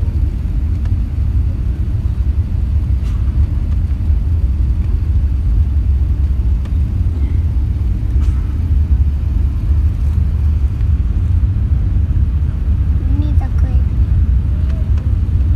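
An airliner's engines roar with a steady, deep rumble inside the cabin.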